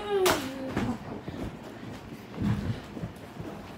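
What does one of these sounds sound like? Feet thump on a soft mattress as a young boy jumps.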